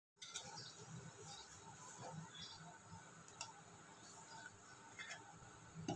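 A metal spoon scrapes and clinks against a bowl.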